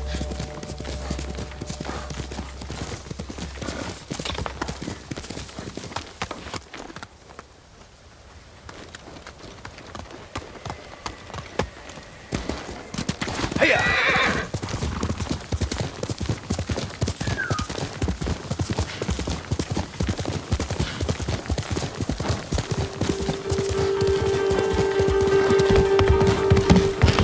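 A horse gallops, its hooves drumming steadily on the ground.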